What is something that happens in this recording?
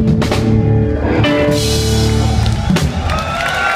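A band plays music loudly through speakers, then stops.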